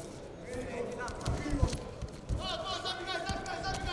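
Wrestlers' bodies thud onto a padded mat.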